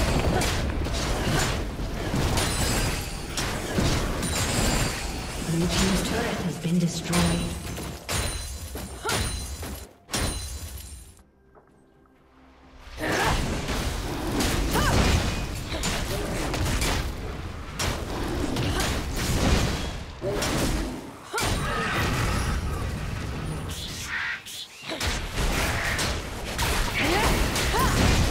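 Game spell effects crackle and burst in a fast fight.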